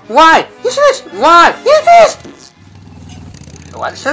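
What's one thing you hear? A cartoon digger character speaks with animation, in a strained, indignant voice.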